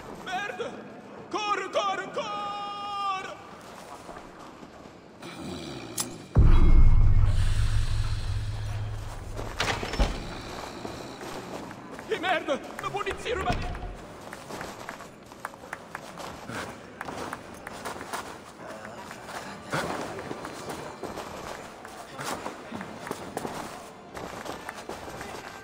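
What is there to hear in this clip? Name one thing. Footsteps tread on a wooden floor.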